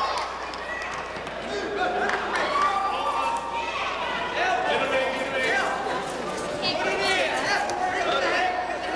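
Young spectators shout and cheer loudly, echoing around a large hall.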